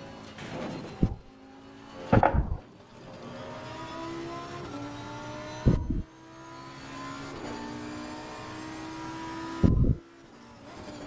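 A race car engine bangs loudly on gear changes.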